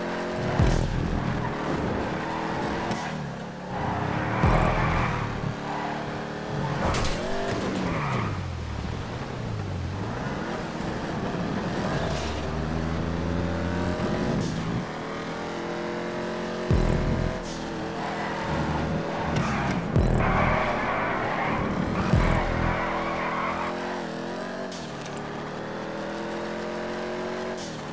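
A racing car engine roars and revs up and down through gear changes.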